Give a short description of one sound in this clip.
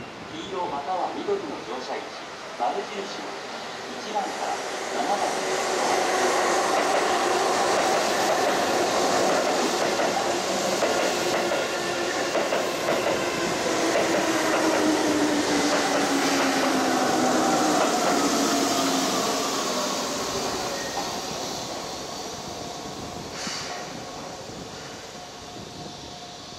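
An electric train rumbles past close by, its wheels clattering over the rails.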